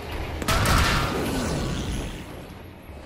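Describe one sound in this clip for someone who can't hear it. A loud explosion booms close by.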